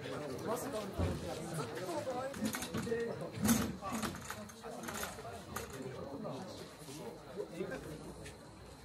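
Several men talk and call out to one another outdoors.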